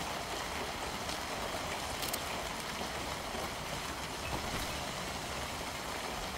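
Rain falls steadily on foliage outdoors.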